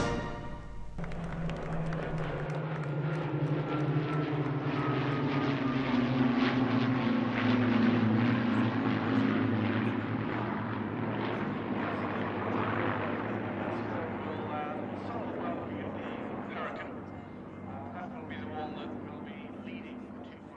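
A small model airplane engine buzzes steadily, its pitch slowly sliding.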